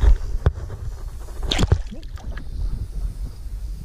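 Water splashes as a fish is released.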